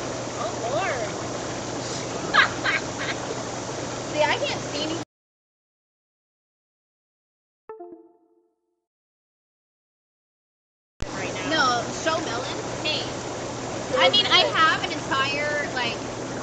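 Young women chat and laugh together outdoors, close by.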